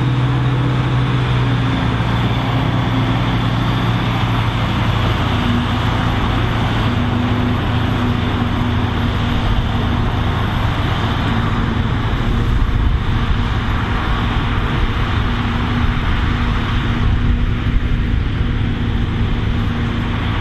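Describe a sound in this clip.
A large harvester engine roars steadily close by.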